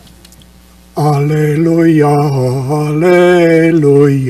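An elderly man chants in a steady sung voice through a microphone, echoing in a large hall.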